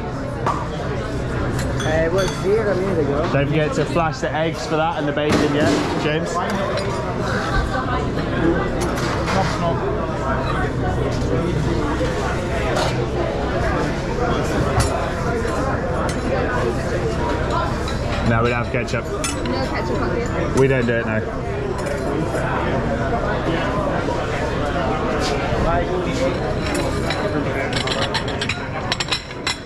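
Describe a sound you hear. Many people chatter all around in a busy, echoing room.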